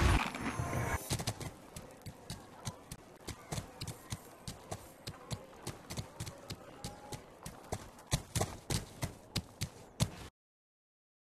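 Short interface clicks tick in quick succession.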